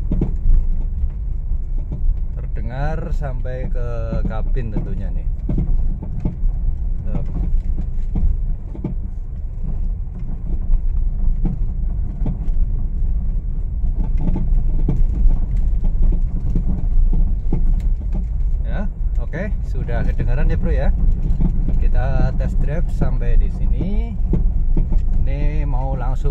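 Tyres rumble and bump over a rough dirt road.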